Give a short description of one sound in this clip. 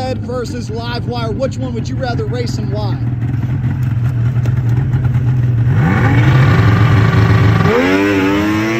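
A snowmobile engine rumbles loudly at idle, close by.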